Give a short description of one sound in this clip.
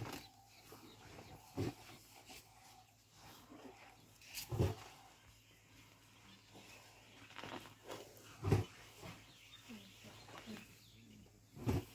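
An elephant shuffles its feet on grass close by.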